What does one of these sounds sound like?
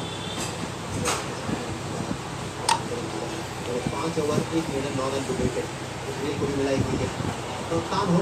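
A game piece clicks down onto a board.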